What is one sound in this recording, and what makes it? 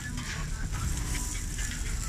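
A metal spatula scrapes across a griddle.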